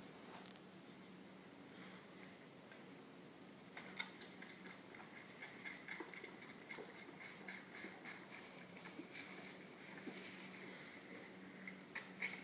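A lamb sucks noisily at a bottle.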